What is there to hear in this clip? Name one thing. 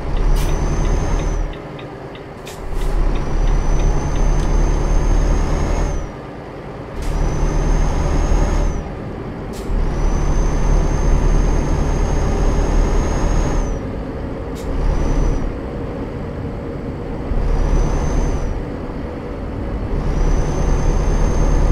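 A truck engine rumbles steadily, surging and easing off in turn.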